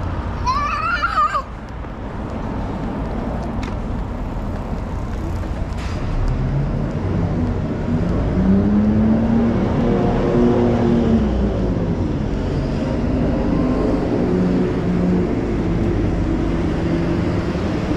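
City traffic hums steadily nearby.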